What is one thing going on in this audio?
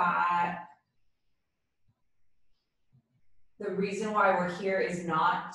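A young woman speaks calmly and gently close by, with a pause.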